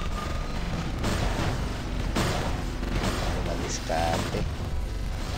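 Energy weapons fire in sharp bursts.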